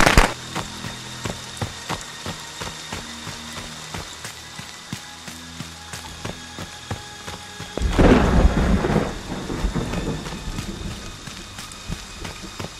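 Footsteps run quickly over leaves and ground.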